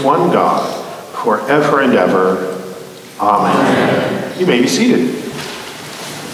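A middle-aged man reads out calmly through a microphone in a large echoing hall.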